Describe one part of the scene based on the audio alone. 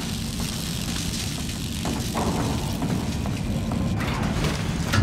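A welding torch hisses and crackles nearby.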